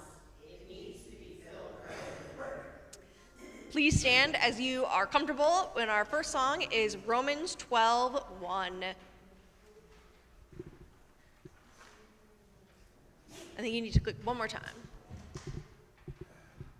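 A woman speaks calmly into a microphone in a large echoing room.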